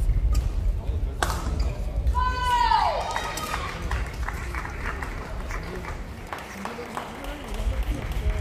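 Badminton rackets smack shuttlecocks in a large echoing hall.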